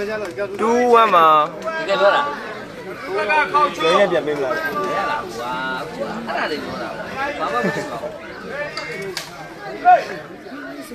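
Several men shout and call out with animation nearby, outdoors.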